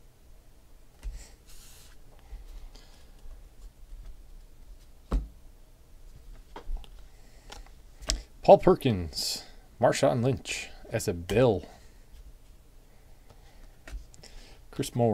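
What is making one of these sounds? Trading cards rustle and slide against each other as hands sort through them.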